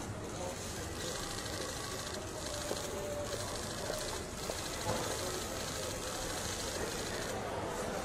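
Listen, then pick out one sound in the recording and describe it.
Footsteps walk away on pavement.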